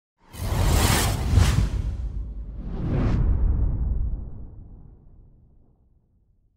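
A magical whoosh sweeps in with a deep rumble.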